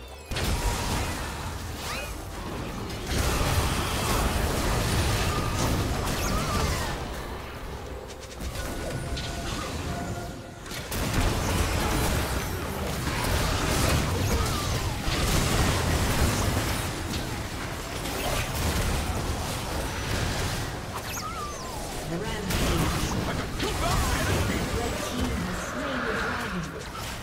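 Game spell effects and attacks crash and zap in quick bursts.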